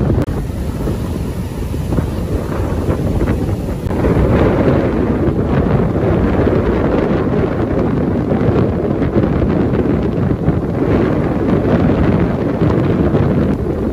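Waves crash and roar onto the shore without a break.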